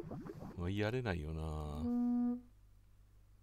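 A horn blows loudly.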